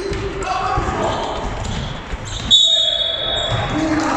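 Sneakers squeak and thud on a hard court in a large echoing hall.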